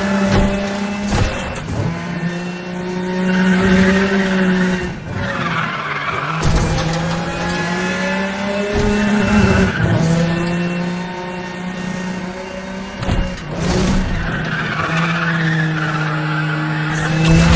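Tyres hiss and skid on the road surface.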